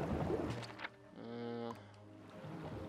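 A short chime plays as a menu opens.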